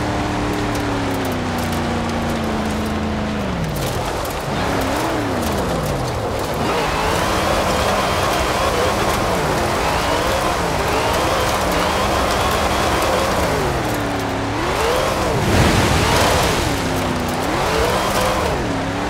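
A car engine revs up and down throughout, rising and falling in pitch.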